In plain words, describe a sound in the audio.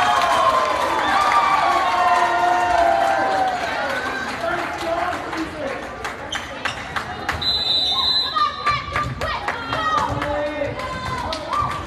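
A crowd of spectators cheers and chatters loudly in an echoing gym.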